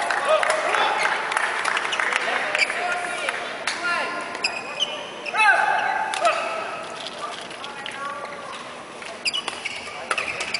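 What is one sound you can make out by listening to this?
Sports shoes squeak sharply on a hard court floor in a large echoing hall.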